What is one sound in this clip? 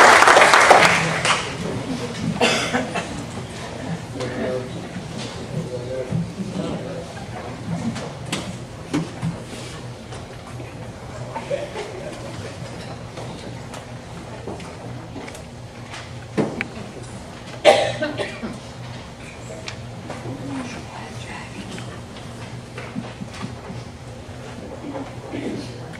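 A crowd of men and women chatter quietly in a large room.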